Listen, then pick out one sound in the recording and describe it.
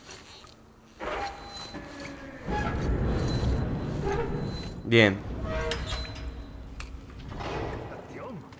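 A metal valve wheel grinds and creaks as it is turned by hand.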